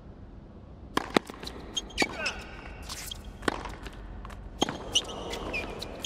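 A tennis ball is struck hard back and forth with rackets.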